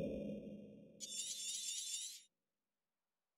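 A bright magical game shimmer chimes briefly.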